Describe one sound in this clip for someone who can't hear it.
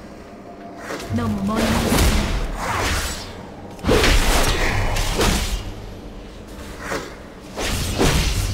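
Magic spells blast and crackle loudly in a fight.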